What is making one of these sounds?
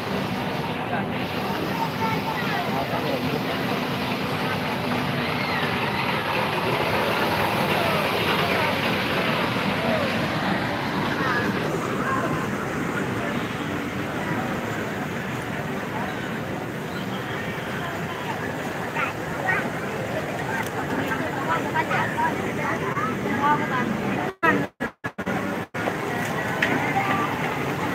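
A crowd of people chatter outdoors nearby.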